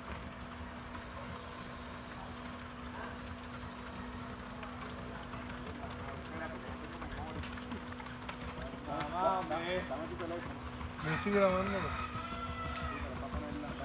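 A horse's hooves clop at a walk on hard ground nearby.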